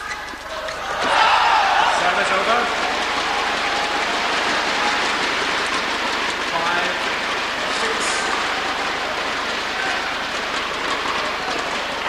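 A large crowd cheers and applauds loudly in a big echoing hall.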